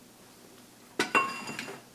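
Hands shuffle and rustle items on a workbench.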